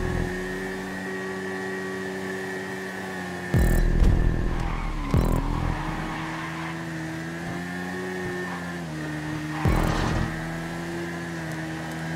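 A motorcycle engine roars steadily at high revs, with sudden pitch shifts as gears change.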